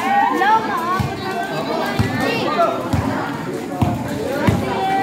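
A basketball bounces with dull thumps on a hard court.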